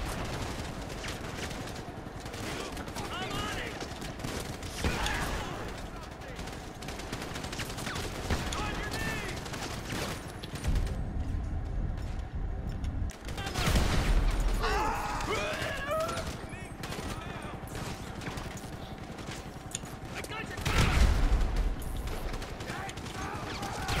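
Gunshots crack and echo down a city street.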